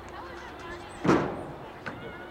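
A foot kicks a ball with a sharp thud.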